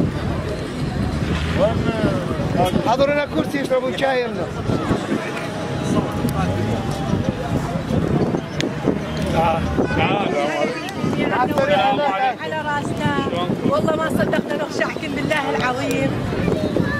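Men talk nearby outdoors, several voices overlapping.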